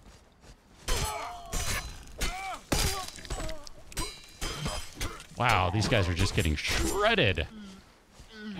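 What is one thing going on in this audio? A sword slashes and strikes a creature with wet thuds.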